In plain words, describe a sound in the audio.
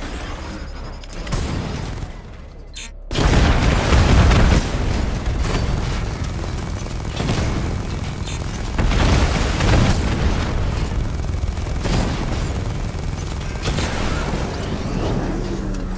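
An armored vehicle's engine rumbles.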